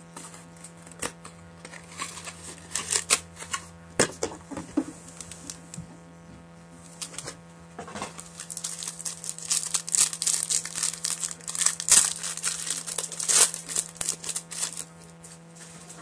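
Paper cards rustle and tap against a table close by.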